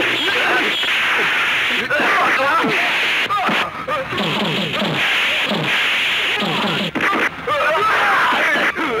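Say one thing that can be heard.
Men shout and grunt while fighting, close by.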